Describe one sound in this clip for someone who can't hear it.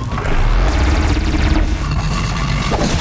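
A laser beam fires with a buzzing zap.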